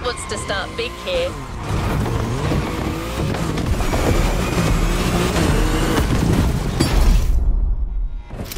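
A sports car engine roars and revs.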